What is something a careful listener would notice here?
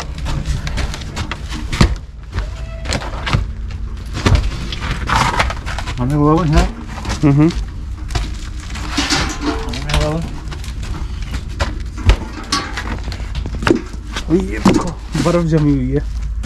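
A metal bucket clanks.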